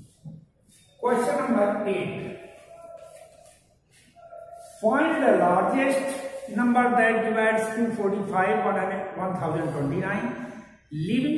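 An elderly man speaks clearly in a lecturing tone, close by.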